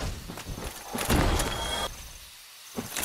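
A heavy armoured body crashes to the ground.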